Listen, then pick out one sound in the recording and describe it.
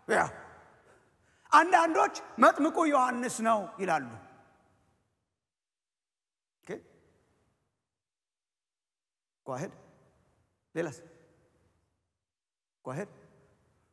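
A man speaks with animation through a microphone, with pauses, in a large echoing room.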